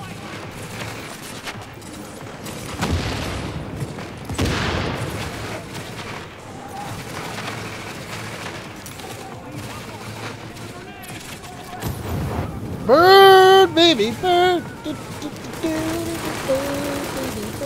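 Gunshots crack in short bursts nearby.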